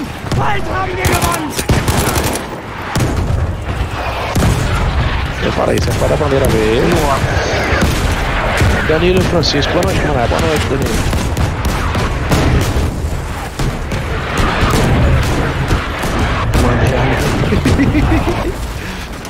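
Rapid gunfire crackles and bangs close by.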